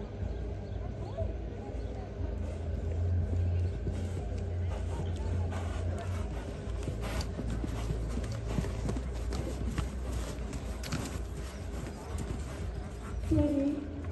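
Horse hooves thud on soft sand.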